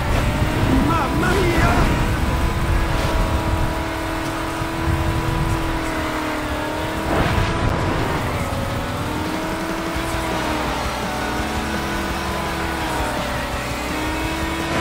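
A small car engine drones steadily at high speed, its pitch wavering.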